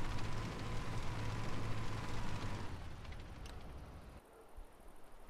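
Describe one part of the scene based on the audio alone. A vehicle engine rumbles steadily, then fades.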